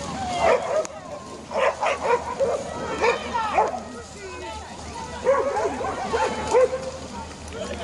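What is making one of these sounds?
Dogs bark excitedly.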